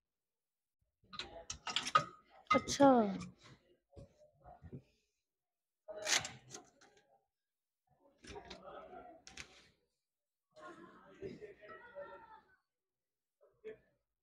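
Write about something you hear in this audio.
A folding wheelchair's metal frame clicks and rattles as it is unfolded.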